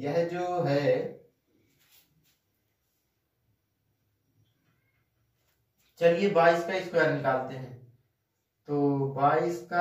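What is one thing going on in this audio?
A man explains calmly, close by, in short bursts with pauses.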